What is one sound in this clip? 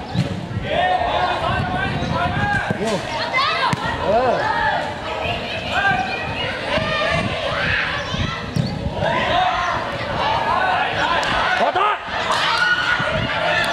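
A crowd of children shouts and cheers loudly nearby.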